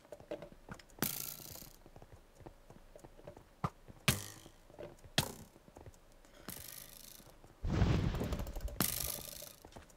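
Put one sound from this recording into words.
Sharp hits land in a video game fight, over and over.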